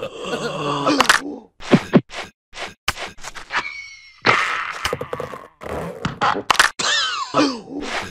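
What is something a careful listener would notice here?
Cartoon creatures grunt and scuffle as they wrestle.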